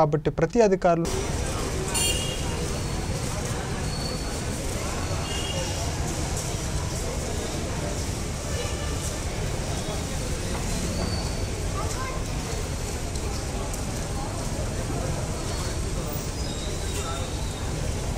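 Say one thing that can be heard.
Busy street traffic rumbles steadily outdoors.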